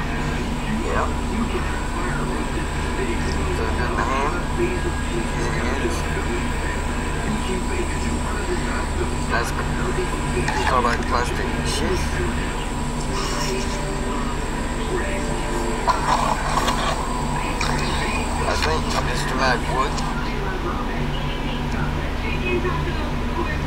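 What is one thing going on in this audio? A man talks calmly, heard through a small, tinny loudspeaker.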